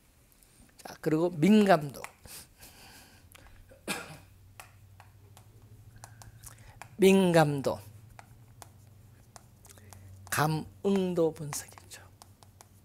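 An elderly man speaks calmly into a nearby microphone, in short phrases.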